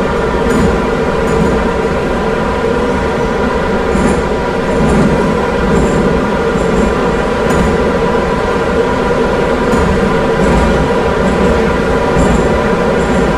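Train wheels click rhythmically over rail joints.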